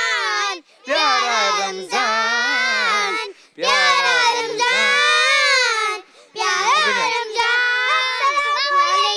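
A young girl sings through a microphone in a high, clear voice.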